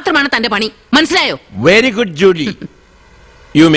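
A woman speaks sharply and with agitation, close by.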